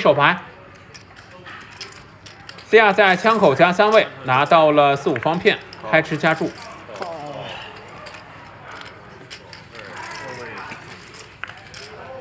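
Poker chips click together.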